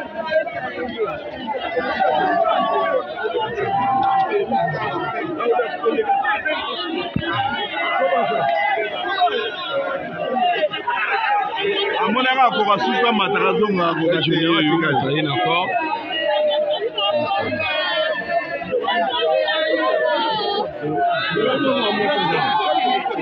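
A dense crowd of men and women talks and shouts all around, close by.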